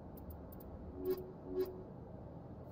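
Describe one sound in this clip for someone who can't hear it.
Short electronic menu tones beep twice.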